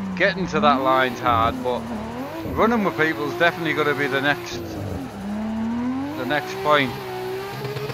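A man talks with animation into a headset microphone.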